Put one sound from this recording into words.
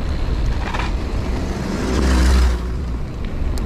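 A car engine hums closer and passes by.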